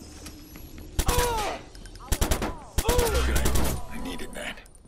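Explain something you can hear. A submachine gun fires rapid bursts of gunshots.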